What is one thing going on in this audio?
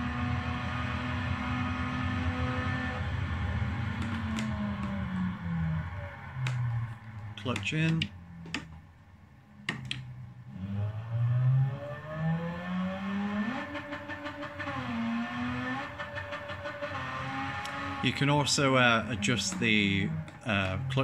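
A racing car's engine roars, rising and falling in pitch as it shifts gears, heard through a television's speakers.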